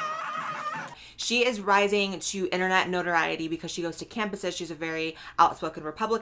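A young woman talks with animation close to a microphone.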